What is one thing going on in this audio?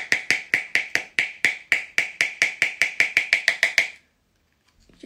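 A makeup brush taps rapidly against a compact.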